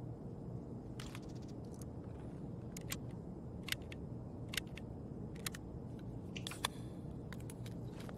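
Short interface clicks sound as items are moved around.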